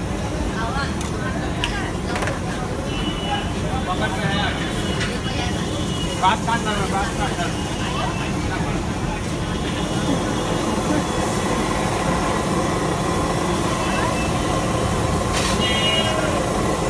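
Vegetables sizzle steadily on a hot griddle.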